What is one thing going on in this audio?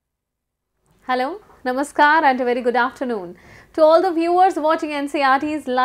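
A young woman speaks warmly and clearly into a microphone, close by.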